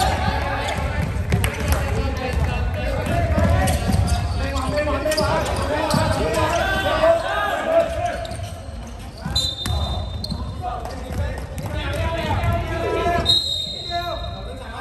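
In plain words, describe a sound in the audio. Sneakers squeak sharply on a hard floor in a large echoing hall.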